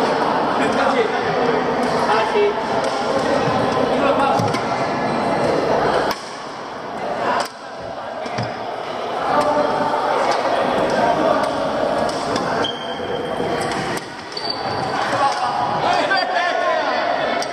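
Many voices chatter in a large echoing hall.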